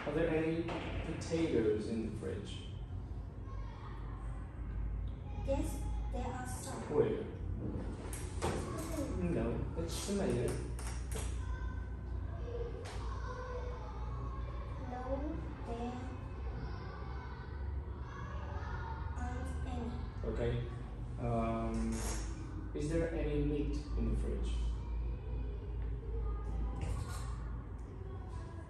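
A young woman speaks softly nearby.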